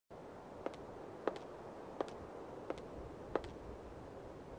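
Footsteps click slowly on a hard floor.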